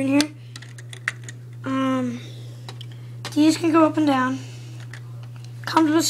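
Plastic parts click and rattle as a hand handles a toy.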